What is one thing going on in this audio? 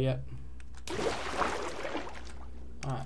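Water splashes as something plunges in.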